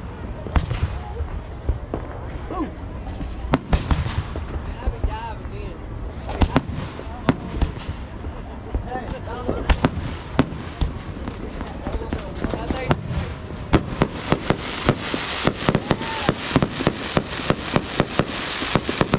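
Fireworks bang and pop in the sky.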